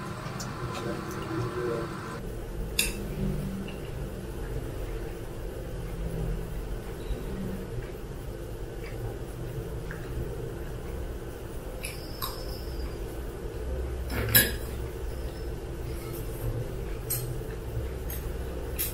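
A young woman slurps noodles and chews close to a microphone.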